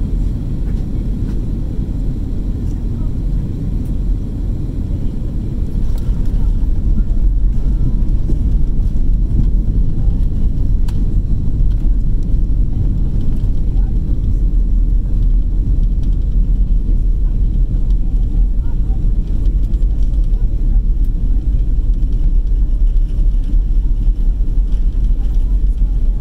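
A jet airliner's engines roar steadily from inside the cabin, growing louder at about seven seconds.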